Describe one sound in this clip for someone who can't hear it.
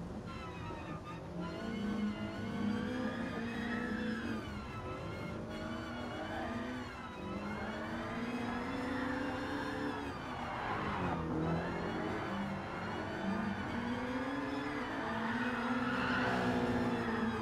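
A car engine roars, its pitch rising and falling as it revs up and shifts gears.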